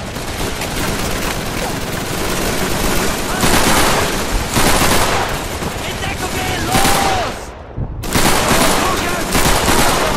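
Gunfire and explosions rumble all around in a dense battle.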